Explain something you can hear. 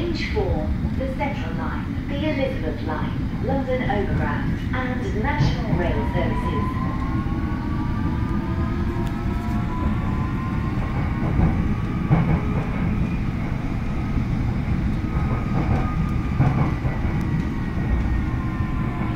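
An electric subway train rumbles along the tracks, heard from inside the carriage.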